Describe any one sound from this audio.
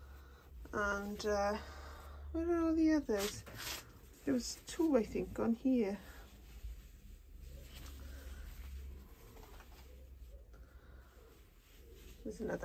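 Leaves rustle softly as a hand brushes through them.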